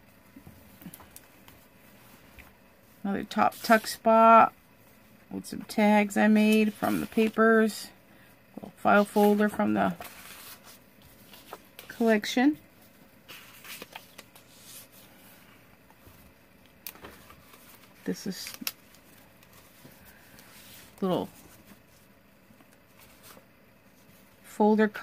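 Paper pages rustle and crinkle as they are handled and turned.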